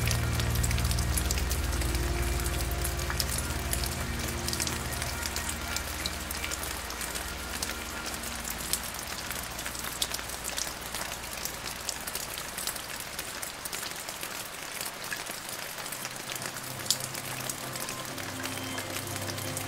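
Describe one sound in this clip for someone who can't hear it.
Heavy rain falls steadily, pattering on leaves and branches.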